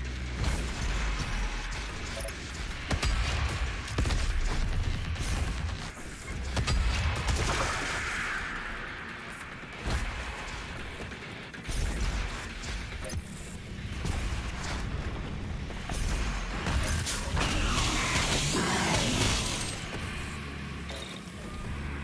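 A heavy gun fires in rapid bursts of blasts.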